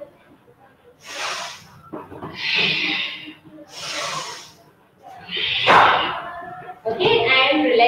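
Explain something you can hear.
A woman breathes out forcefully in long, rhythmic breaths.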